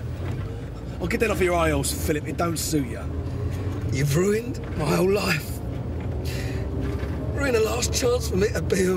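A second man answers, his voice strained and tearful.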